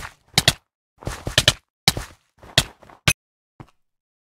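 Sword blows strike in quick, sharp hits.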